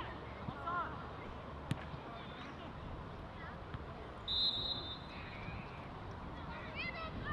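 Football players shout to each other across an open field in the distance.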